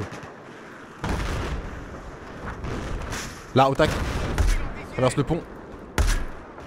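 Explosions rumble in the distance.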